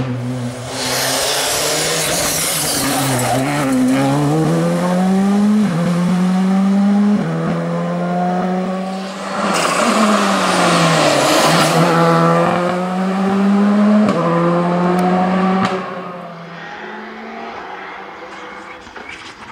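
A rally car engine roars loudly, revving up and dropping as the gears change.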